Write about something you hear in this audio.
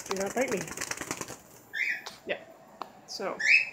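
A bird flutters its wings close by.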